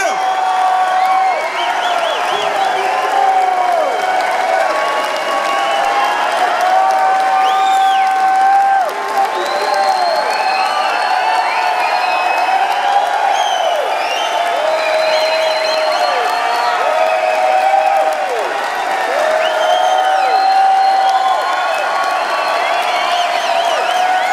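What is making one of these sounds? A large audience cheers and whistles in a big hall.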